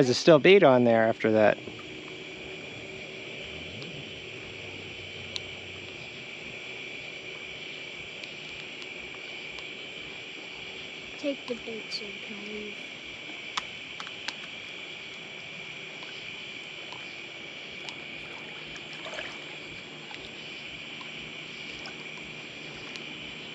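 Water laps gently at the shore.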